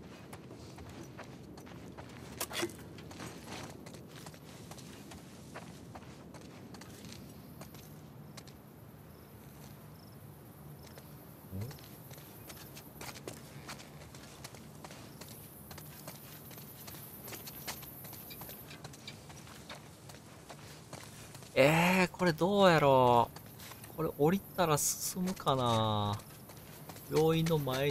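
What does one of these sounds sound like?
Footsteps pad softly on a hard floor.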